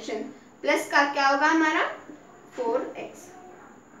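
A young girl speaks calmly, close by.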